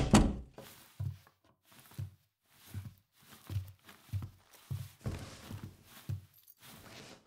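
Footsteps thud on a hard floor indoors.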